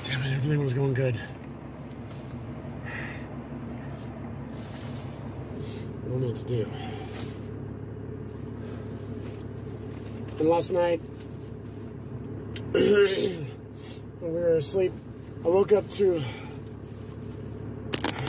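A car engine hums steadily inside the car.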